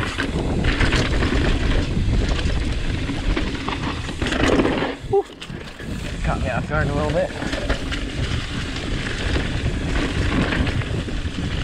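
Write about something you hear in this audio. Bicycle tyres rumble and crunch over a bumpy dirt trail.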